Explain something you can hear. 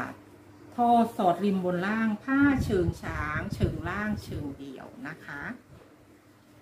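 A middle-aged woman speaks calmly, close to the microphone.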